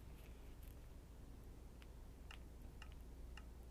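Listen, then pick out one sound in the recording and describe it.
A game menu gives a soft click.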